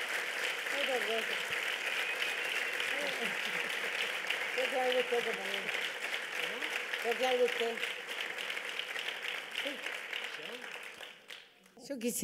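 A woman laughs heartily up close.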